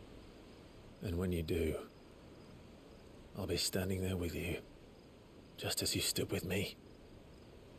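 A man speaks in a low, earnest voice.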